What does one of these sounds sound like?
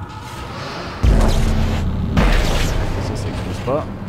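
A gun fires loud shots that ring out in a metal corridor.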